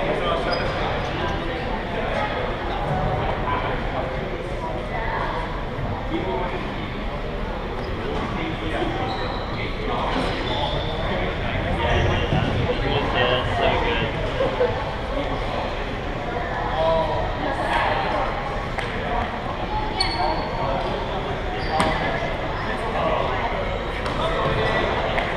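Shuttlecocks are struck sharply with rackets.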